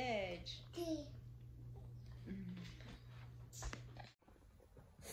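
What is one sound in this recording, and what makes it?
A baby sucks and gulps from a bottle.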